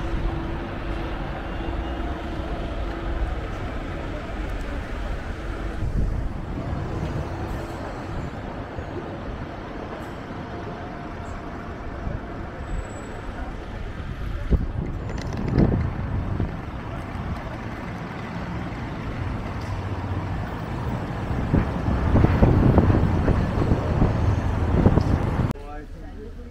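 Traffic hums steadily along a city street outdoors.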